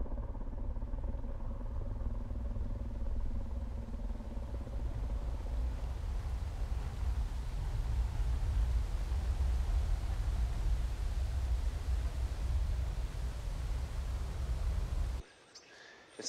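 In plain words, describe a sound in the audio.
A waterfall roars steadily.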